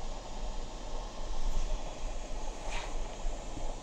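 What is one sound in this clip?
A sheet of paper rustles briefly as it is moved.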